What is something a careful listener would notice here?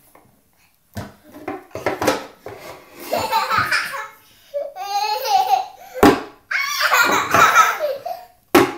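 Wooden blocks knock and clatter together.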